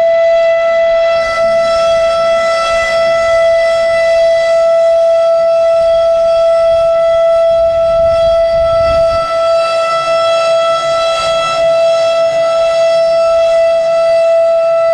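A loud outdoor warning siren blares a steady, unbroken tone.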